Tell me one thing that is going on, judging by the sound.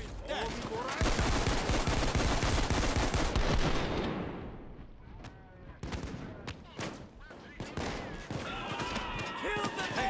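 Guns fire in sharp, rapid shots.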